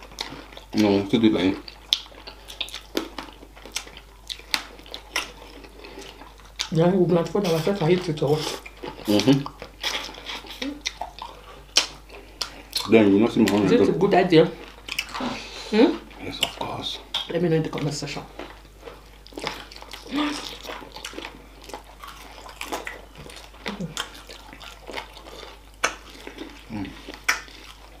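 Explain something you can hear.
A man chews and smacks his lips loudly close to a microphone.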